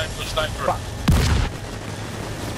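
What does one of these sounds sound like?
A loud explosion booms close by.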